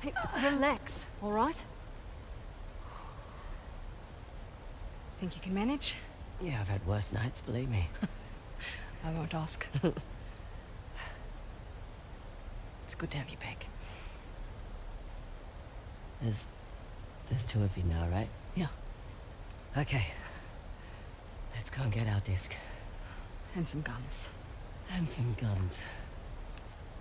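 A young woman speaks quietly and calmly, close by.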